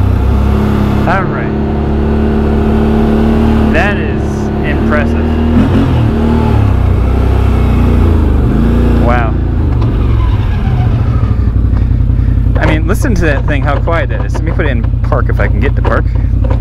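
A quad bike engine hums and rumbles steadily up close.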